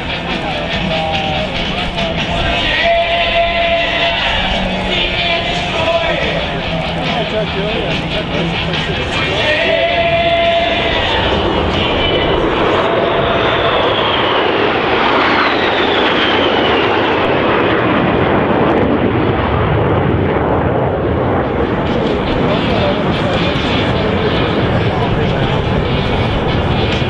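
Jet engines roar loudly overhead.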